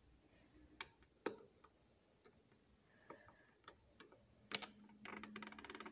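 Plastic toy bricks click and rattle as a hand moves them.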